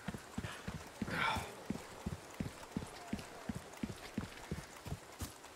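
Heavy footsteps thud on stony ground at a quick, steady pace.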